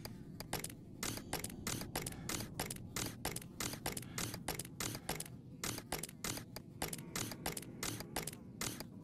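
Short menu clicks tick as a cursor moves between items.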